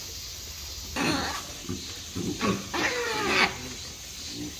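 Monkeys shriek and bark loudly nearby.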